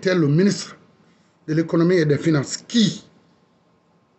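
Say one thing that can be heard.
A man speaks forcefully and close up.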